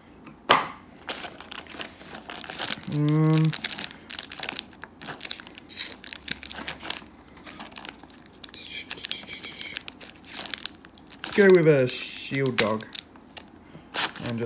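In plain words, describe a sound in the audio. Playing cards rustle and click as fingers flip through them in a plastic box.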